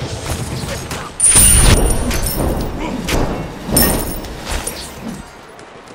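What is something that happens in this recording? Magical blasts and impacts crash during a fight.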